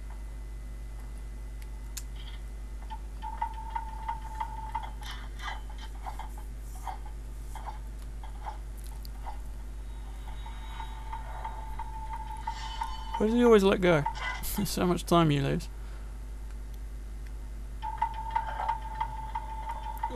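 Footsteps patter on a hard stone floor.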